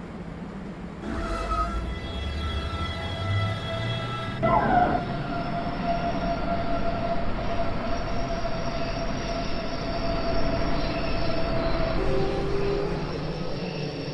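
Train wheels rumble and clack along the track.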